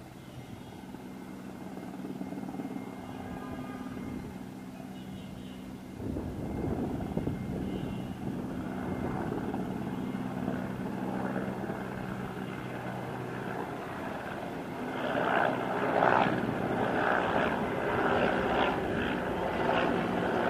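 A helicopter's rotor thumps overhead, growing louder as it approaches.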